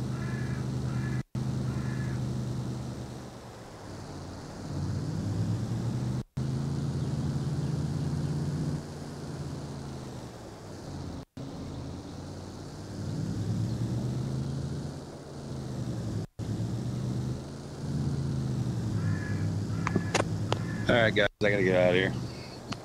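A truck engine hums steadily, rising and falling.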